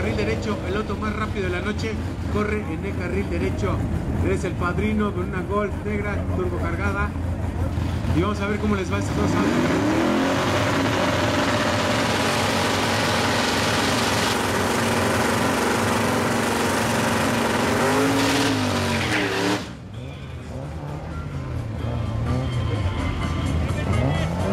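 A car engine idles and revs in short bursts close by.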